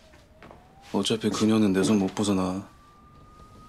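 A young man speaks tensely into a phone, close by.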